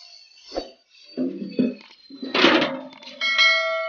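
Water pours from a bowl and splashes into a tank.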